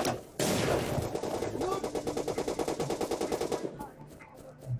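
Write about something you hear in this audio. An automatic rifle fires in a rapid burst of shots.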